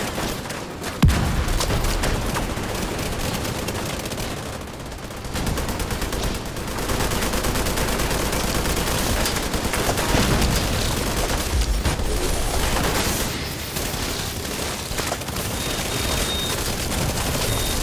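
Explosions thud loudly.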